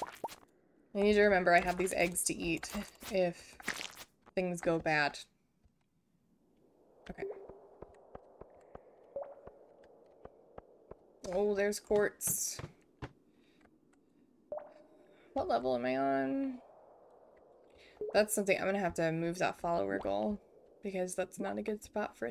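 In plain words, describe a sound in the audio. A young woman talks casually and close into a microphone, in bursts with pauses.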